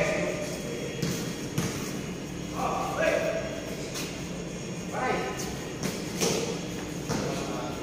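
A basketball bounces with a hollow echo on a hard court.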